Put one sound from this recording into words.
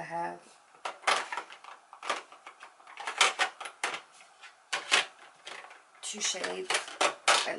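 Small items rattle and clatter in a plastic container.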